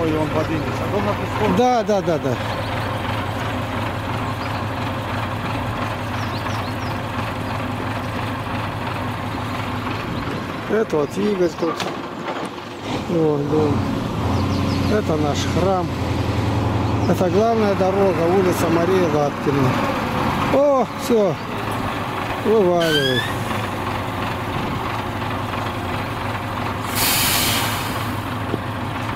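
A heavy truck engine rumbles and idles nearby.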